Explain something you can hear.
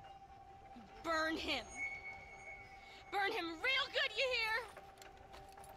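A young woman shouts excitedly.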